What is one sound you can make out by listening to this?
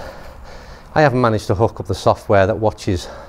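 A middle-aged man talks calmly and clearly to the listener, close by.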